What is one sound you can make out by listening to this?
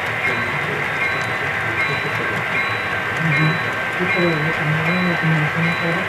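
A model train rumbles and clatters steadily along its track.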